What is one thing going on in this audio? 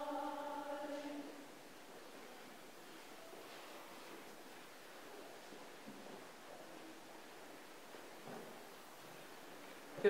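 A congregation murmurs and shifts softly in a large echoing hall.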